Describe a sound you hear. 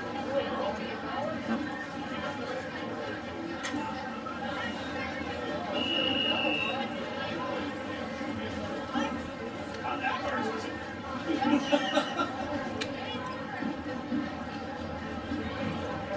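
Young men's voices murmur and call out across an open field.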